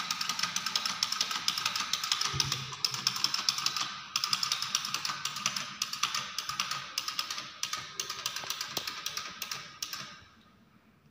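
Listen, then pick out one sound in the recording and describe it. A wind-up toy clicks and whirs rapidly as it walks.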